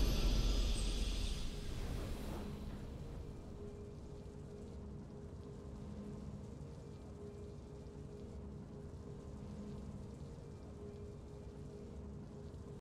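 A triumphant game fanfare swells at first and then fades into soft, steady music.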